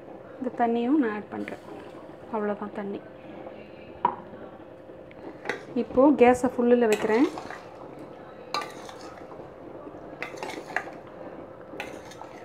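A metal ladle scrapes and clinks against a metal pot while stirring a thick curry.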